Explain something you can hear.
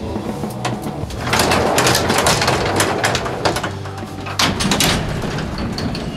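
A wooden elevator gate rattles as it slides open.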